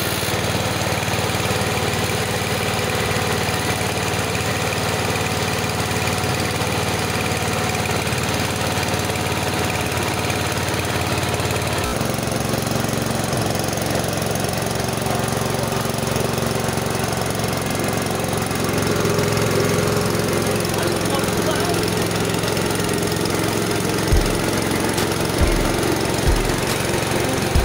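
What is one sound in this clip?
A machine motor hums loudly and steadily.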